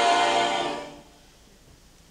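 A choir sings a final chord in a large hall, and the chord dies away.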